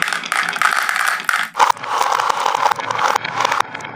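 Marbles clatter into a plastic toy truck.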